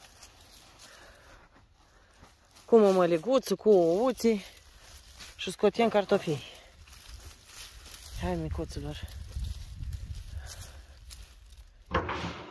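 Fingers scrape and dig through dry, crumbly soil.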